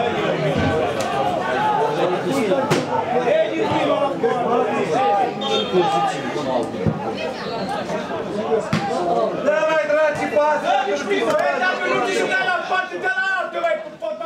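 A crowd of spectators chants and shouts across an open stadium.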